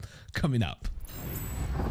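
A man speaks briefly and cheerfully into a close microphone.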